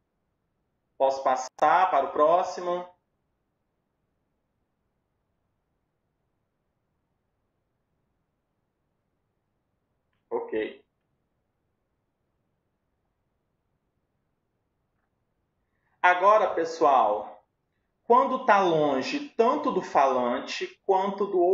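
A man speaks calmly through an online call, in bursts with long pauses.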